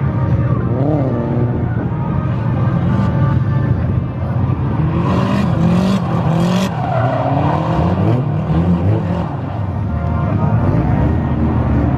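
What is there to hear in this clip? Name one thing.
Tyres squeal as a car slides on tarmac.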